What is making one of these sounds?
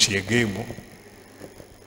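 A man speaks briefly into a microphone, heard through a loudspeaker.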